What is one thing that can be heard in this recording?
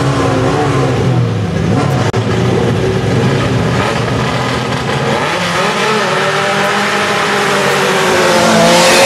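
Car engines idle and rev loudly.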